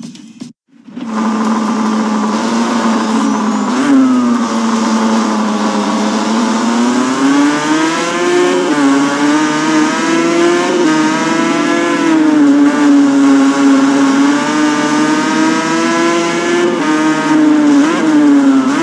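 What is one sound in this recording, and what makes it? A motorcycle engine roars at high revs, its pitch rising and falling as it shifts gears.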